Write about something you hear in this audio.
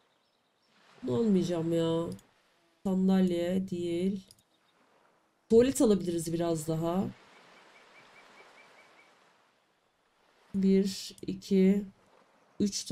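A young woman speaks into a microphone in short bursts.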